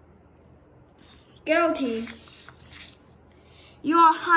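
A sheet of paper rustles as a page is turned.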